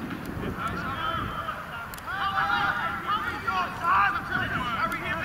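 Young men shout to each other in the distance outdoors.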